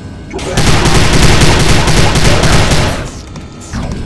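A heavy gun fires in a loud, rapid roar.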